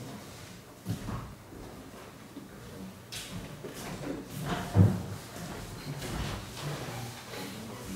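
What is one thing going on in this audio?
A man lectures calmly, heard through a room microphone.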